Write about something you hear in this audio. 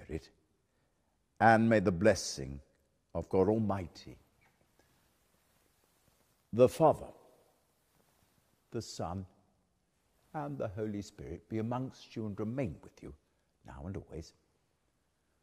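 An elderly man speaks slowly and solemnly.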